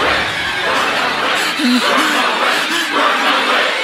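A young man cries out urgently.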